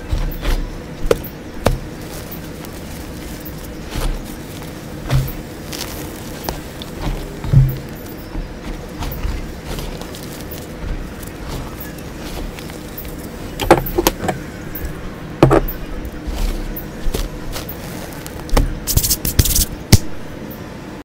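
Hands crumble and squeeze soft powdery chalk, with dry crunching and crackling.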